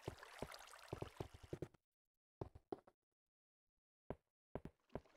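Footsteps thud on hard stone in short bursts.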